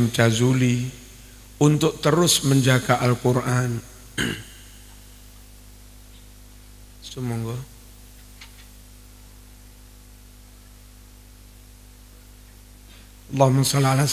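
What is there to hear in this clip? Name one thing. A man chants a recitation in a melodic voice through a loudspeaker, in a large echoing hall.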